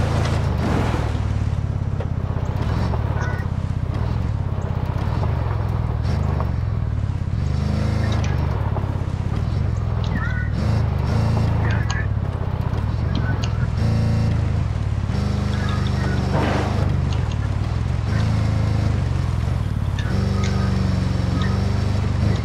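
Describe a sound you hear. A heavy vehicle engine rumbles steadily as it drives.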